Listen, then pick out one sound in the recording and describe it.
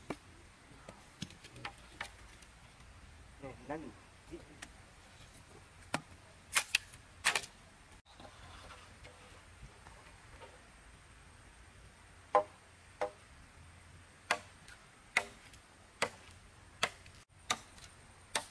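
Bamboo poles knock and clack against each other.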